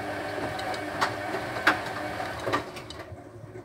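Laundry thumps against a washing machine's drum.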